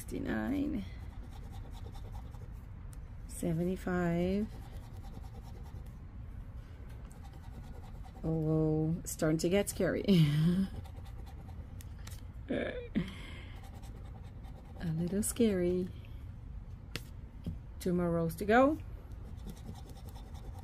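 A coin scratches across a paper ticket.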